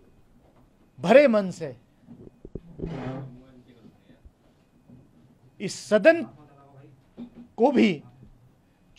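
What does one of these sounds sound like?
A middle-aged man speaks calmly and firmly into close microphones, in short bursts with pauses.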